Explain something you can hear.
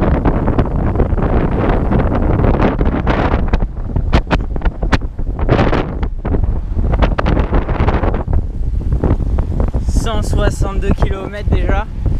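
Bicycle tyres hum on a paved road.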